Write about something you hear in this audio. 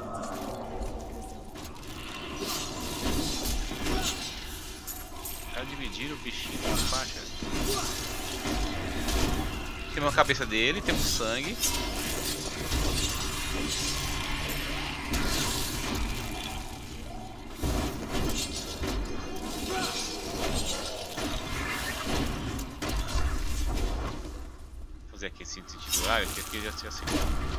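Magic blasts and explosions crackle and boom in quick bursts.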